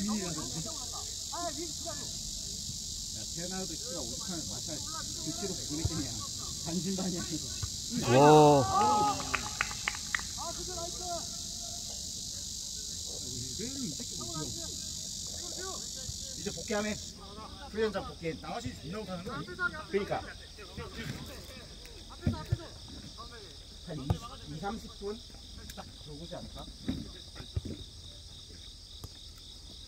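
Players shout and call to each other across an open field.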